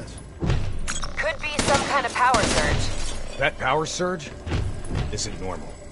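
A rifle fires short bursts of gunshots.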